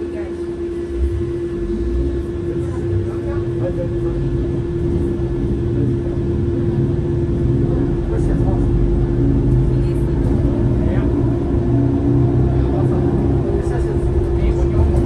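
A bus pulls away and its engine rumbles louder as it drives.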